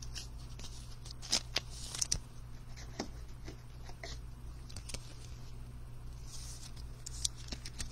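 Plastic card sleeves rustle and crinkle as cards are handled.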